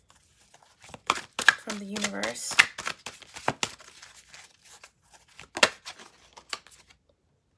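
Playing cards are shuffled and flicked by hand, with crisp snapping clicks.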